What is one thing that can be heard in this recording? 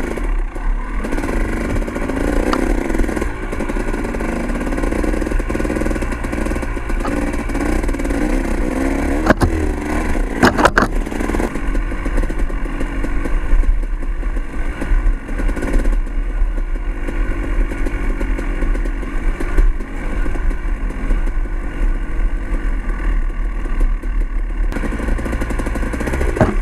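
Tyres crunch over a rocky dirt trail.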